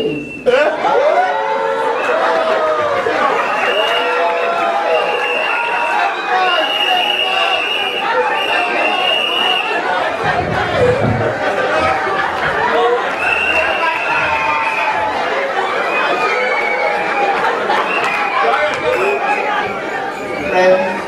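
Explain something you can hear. A woman talks animatedly into a microphone through loudspeakers in an echoing hall.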